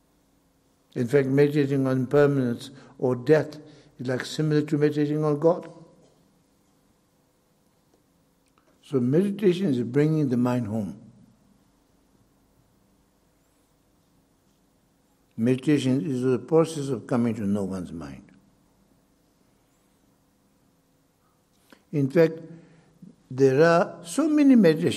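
An elderly man speaks calmly into a microphone, with long pauses between phrases.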